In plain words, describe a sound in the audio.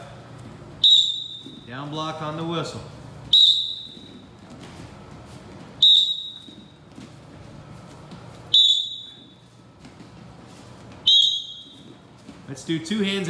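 Bare feet shuffle and thump softly on a padded mat.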